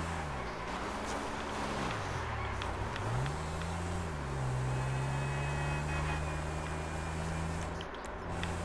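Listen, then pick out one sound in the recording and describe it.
A motorcycle engine revs, rising and falling in pitch as it speeds along.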